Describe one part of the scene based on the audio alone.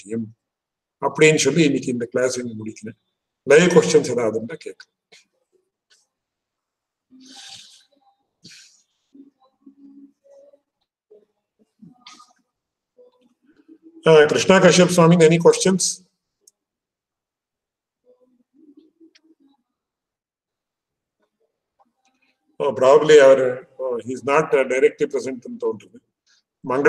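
A middle-aged man speaks calmly into a microphone over an online call, in short bursts with pauses.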